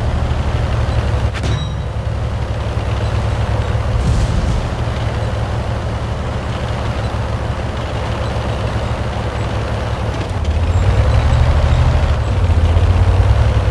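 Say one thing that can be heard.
A tank's engine rumbles.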